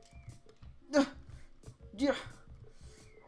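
A cartoon ball makes a short bounce sound in a video game.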